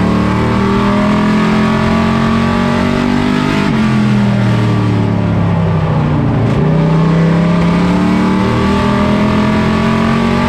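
A race car engine roars loudly from inside the cab, its pitch dropping and rising with gear shifts.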